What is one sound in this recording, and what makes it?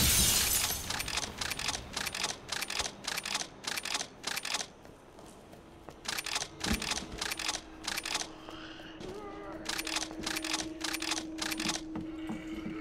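Footsteps thud steadily on stairs.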